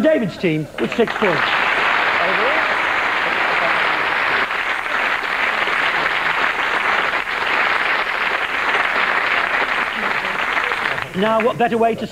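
A studio audience applauds and cheers loudly.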